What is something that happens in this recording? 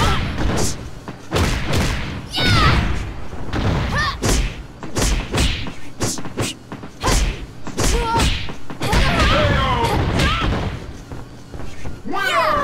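Punches and kicks land with heavy thuds, one after another.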